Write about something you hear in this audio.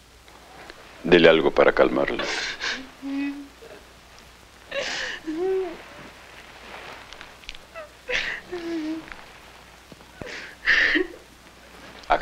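An elderly man speaks in a strained, emotional voice close by.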